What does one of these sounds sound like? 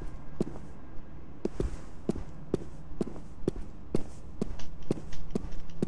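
Footsteps thud quickly on hard ground as a person runs.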